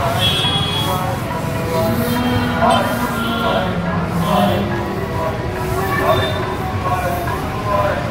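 A motor rickshaw engine putters nearby.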